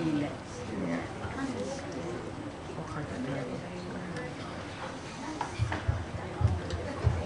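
A young girl speaks into a microphone.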